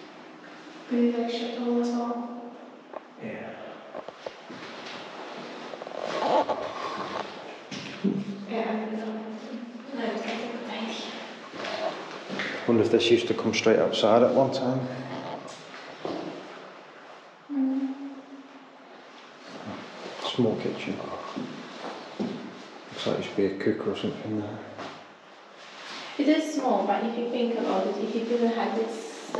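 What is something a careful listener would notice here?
A young woman talks casually nearby, in a room with a slight echo.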